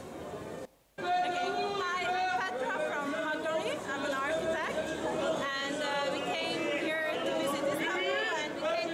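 A young woman speaks cheerfully, close up.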